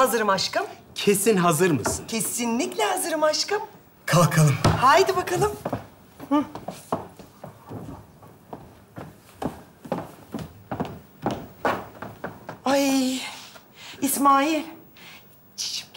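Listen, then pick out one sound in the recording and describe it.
A woman talks loudly and expressively.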